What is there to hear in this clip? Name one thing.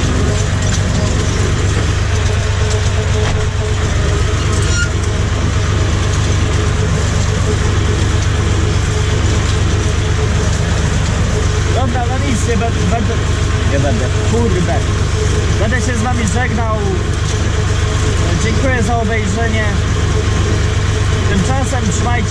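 A tractor engine runs with a steady, loud drone close by.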